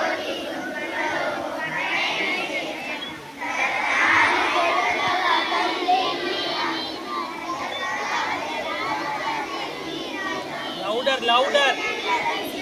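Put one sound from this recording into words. A group of young children recites together in unison through a microphone.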